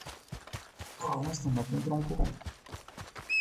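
A young man speaks casually and close into a headset microphone.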